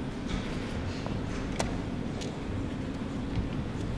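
A chess clock button clicks.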